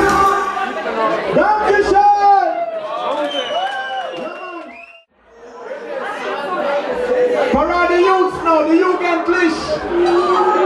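A man sings loudly through a microphone over loudspeakers.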